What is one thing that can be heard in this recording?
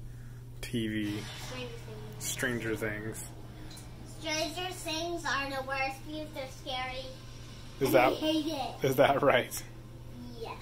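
Young girls talk with animation close by.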